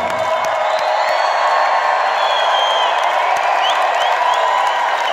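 A crowd whistles shrilly.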